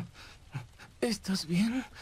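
A young man speaks weakly in a low, strained voice, close by.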